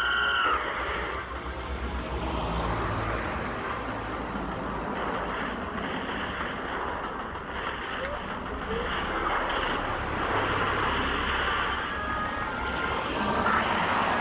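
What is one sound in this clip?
Fiery attack sound effects crackle and whoosh.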